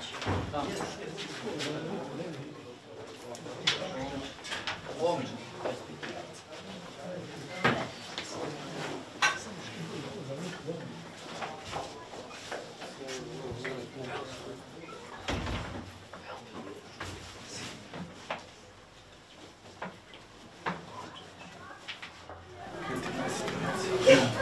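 Several men talk and murmur at once in a small room.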